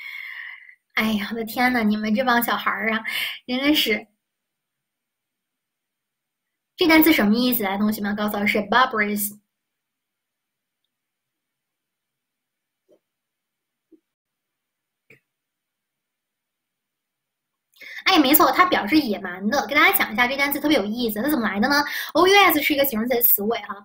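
A young woman speaks calmly and clearly into a close microphone, pausing often.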